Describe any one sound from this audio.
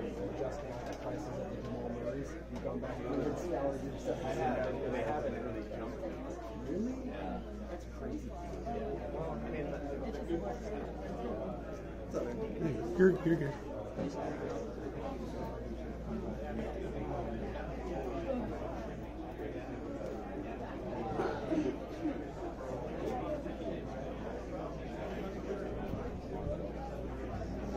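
A crowd of men and women chatter all around in a busy indoor hall.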